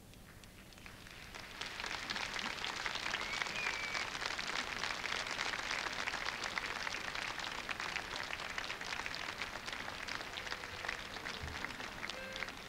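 A large audience claps and cheers in a big echoing hall.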